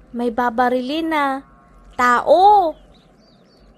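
A young girl speaks with animation in a high voice.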